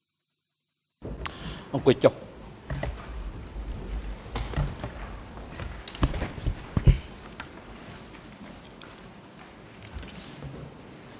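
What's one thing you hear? Chairs knock and bump as people settle in.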